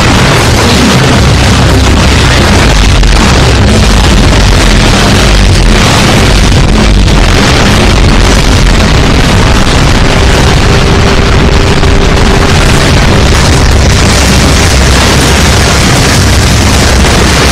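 Electric bolts crackle and zap in rapid bursts.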